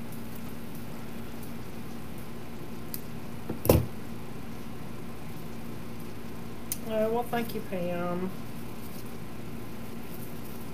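Wire stems rustle and click as a man handles flowers.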